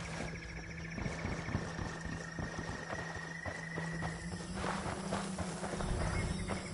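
Leaves and branches rustle as someone pushes through dense undergrowth.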